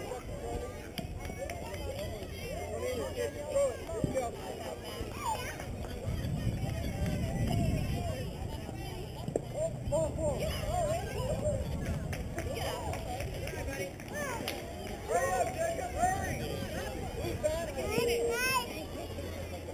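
Men and women shout and cheer from a distance outdoors.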